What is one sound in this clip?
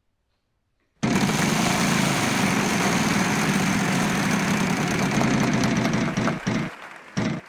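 A prize wheel spins with fast, steady clicking.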